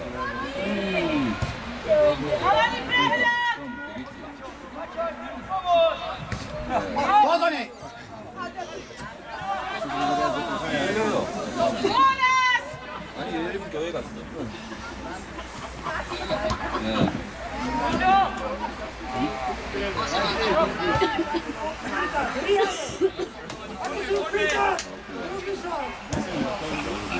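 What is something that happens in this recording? Young players shout to each other across an open pitch.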